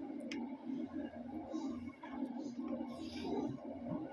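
A young girl chews crunchy fried food.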